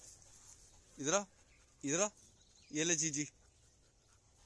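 A dog gives short rising yelps.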